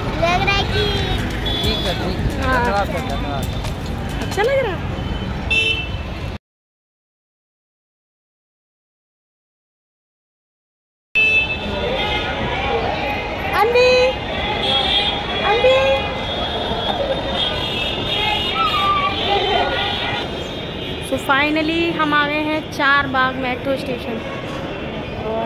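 A young woman talks cheerfully and close up.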